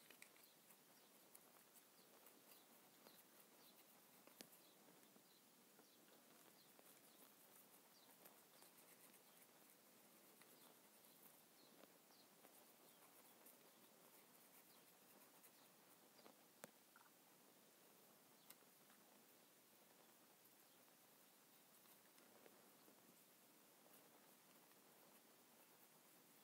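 A small brush dabs and scratches faintly on a plastic model.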